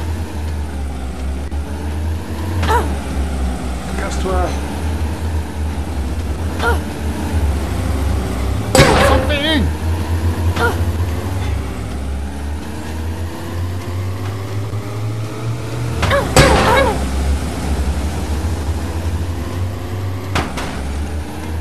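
A vehicle engine hums steadily and shifts in pitch as it drives.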